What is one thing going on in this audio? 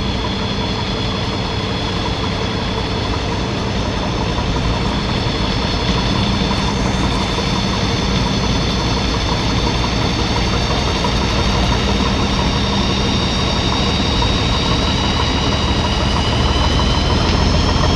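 An excavator engine rumbles steadily close by.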